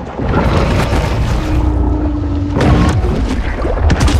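A shark bites with a crunching thud.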